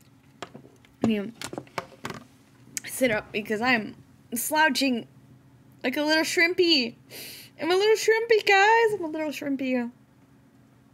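A young woman talks animatedly into a microphone.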